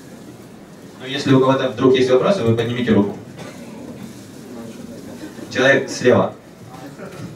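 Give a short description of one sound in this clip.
A young man speaks calmly through a microphone over loudspeakers.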